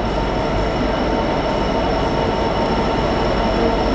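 A train engine hums steadily as another train slowly approaches.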